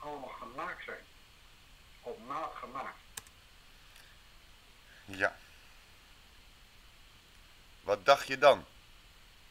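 A man speaks with animation through a microphone, in short bursts.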